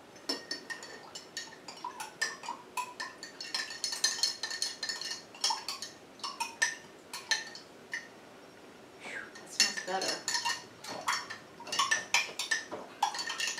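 A spoon clinks and taps against a small glass.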